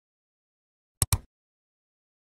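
A mouse clicks twice.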